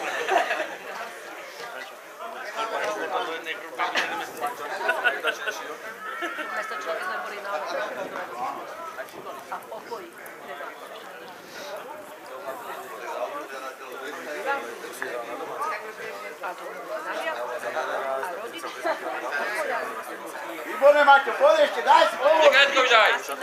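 Men talk nearby, outdoors.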